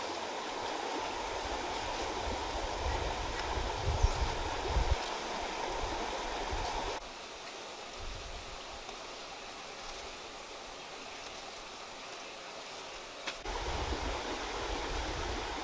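Leaves rustle as they are plucked from stems.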